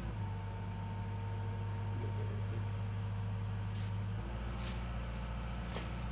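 A man walks closer through grass.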